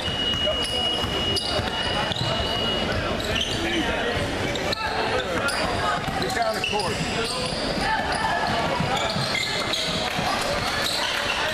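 A crowd of young players and onlookers chatter and call out.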